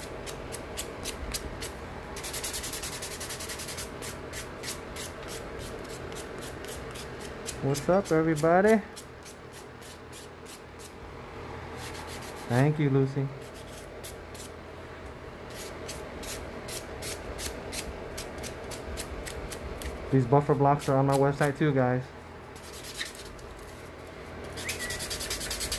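A nail buffer scrapes rapidly back and forth across a fingernail.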